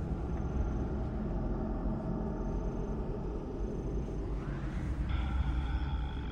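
Footsteps scuff softly on stone.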